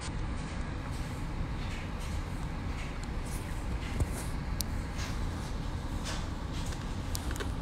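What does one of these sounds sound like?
A young man speaks softly, close to a phone microphone.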